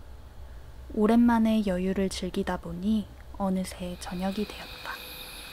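A young girl speaks quietly, close by.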